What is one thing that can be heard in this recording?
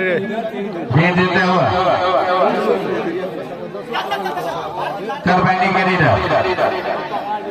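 Men shout loudly in excited bursts close by.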